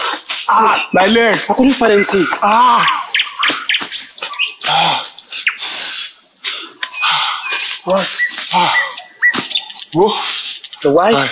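A young man cries out and pleads in a sobbing, strained voice close by.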